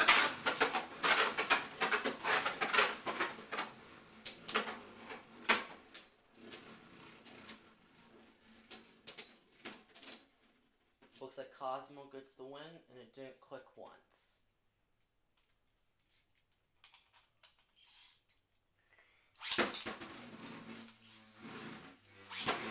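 Spinning tops whir and rattle around a plastic arena.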